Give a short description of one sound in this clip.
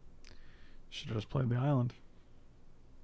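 A middle-aged man speaks briefly with animation, close to a microphone.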